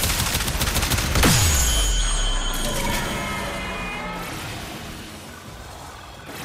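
An energy weapon fires with loud crackling zaps.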